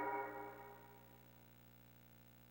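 A short electronic chime rings out and quickly fades.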